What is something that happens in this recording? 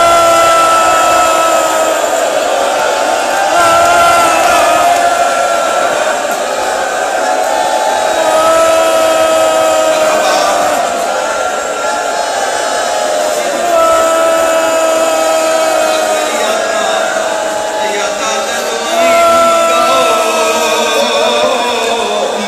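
A man chants loudly in a wailing voice through a loudspeaker, echoing in a hall.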